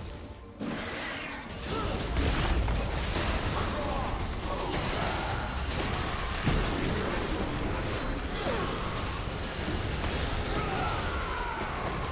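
Weapons strike and impacts thud repeatedly.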